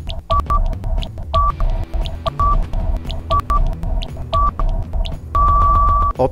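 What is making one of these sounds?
A countdown timer ticks about once a second.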